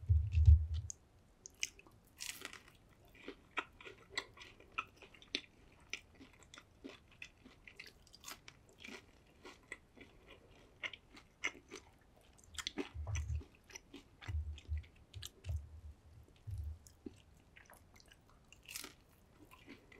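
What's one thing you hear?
A man chews crunchy fried food close to a microphone, with wet crackling bites.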